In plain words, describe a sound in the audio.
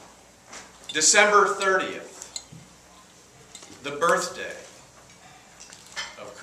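A middle-aged man speaks calmly in short phrases.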